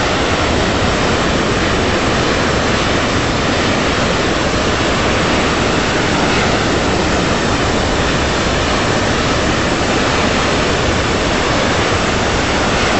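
Jet engines roar steadily in flight.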